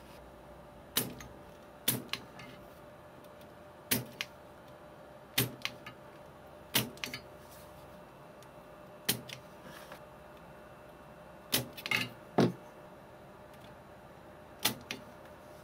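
A metal tip taps and clicks sharply against a circuit board, over and over.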